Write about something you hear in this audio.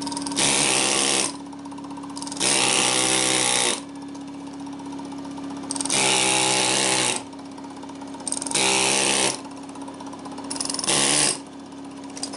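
An air impact wrench whirs loudly in short bursts.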